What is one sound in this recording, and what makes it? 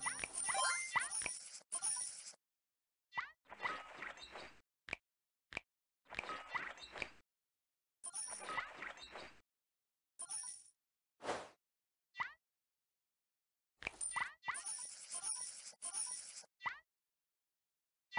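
Short bright game chimes ring out as points are scored.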